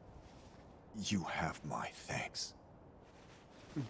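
A man speaks weakly and slowly, close by.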